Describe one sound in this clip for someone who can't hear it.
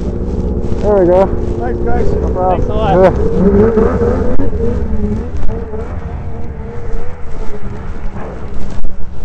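A snowmobile engine idles close by.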